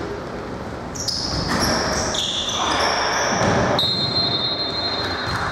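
A referee's whistle blows in short shrill blasts.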